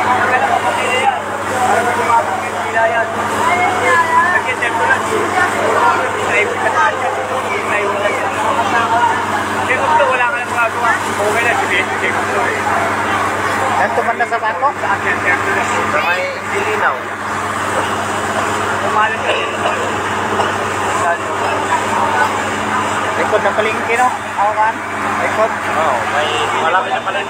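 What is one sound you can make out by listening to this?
A crowd of men and women talks and shouts excitedly close by, outdoors.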